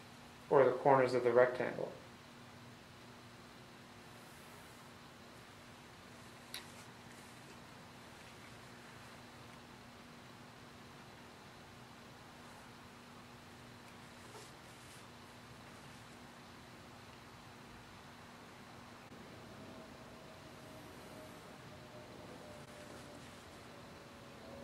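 A pencil scratches faintly along a ruler on paper.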